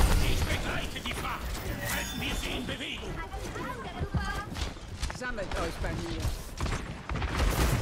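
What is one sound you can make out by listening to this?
Game weapons fire in rapid bursts with sharp blasts.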